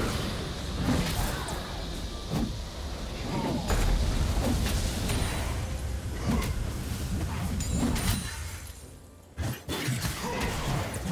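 Spell effects whoosh and crackle in a fast game battle.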